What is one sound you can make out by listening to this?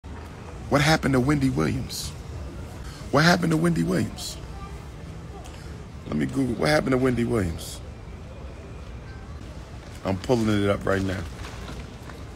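A man speaks close to a phone microphone in short, emphatic bursts with long pauses.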